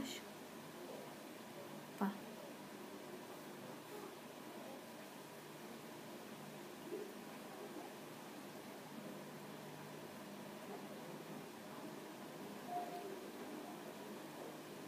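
A pencil scratches softly against skin.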